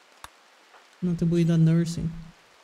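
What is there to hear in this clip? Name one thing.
A man speaks close to a microphone.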